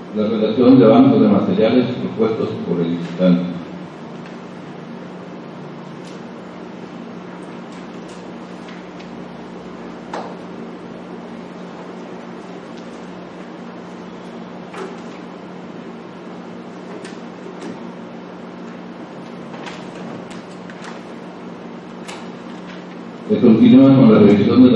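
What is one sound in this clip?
Papers rustle and pages turn.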